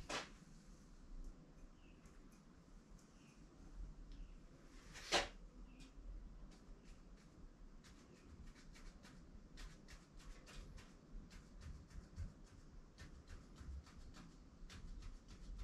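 A plastic sheet rustles as it is handled.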